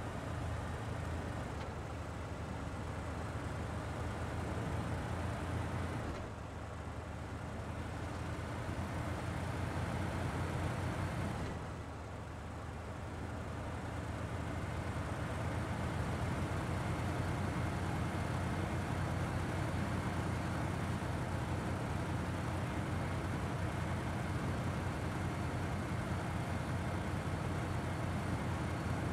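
A heavy truck engine rumbles and labours steadily.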